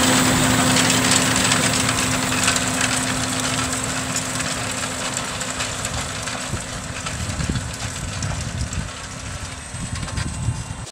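A cultivator rattles and clatters over rough soil.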